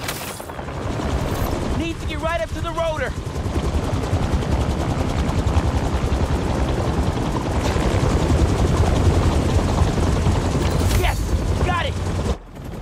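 A helicopter's rotor thumps and roars close by, growing louder.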